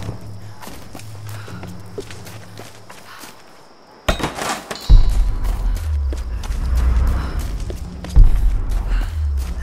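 Footsteps crunch over leaves and twigs on a forest floor.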